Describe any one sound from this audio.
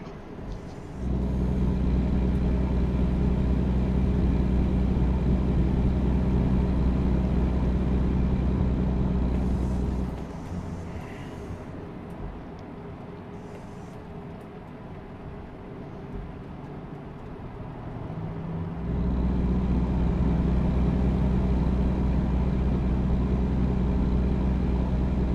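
A truck engine drones steadily inside the cab.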